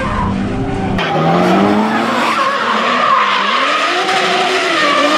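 Car engines scream and rev as cars slide past close by.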